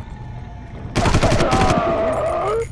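An assault rifle fires a short burst.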